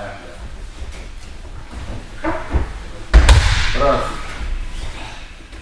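Feet shuffle and thump on a padded mat in an echoing hall.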